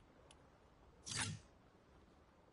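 A low whoosh sweeps through once.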